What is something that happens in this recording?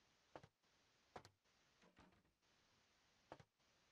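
A door handle rattles.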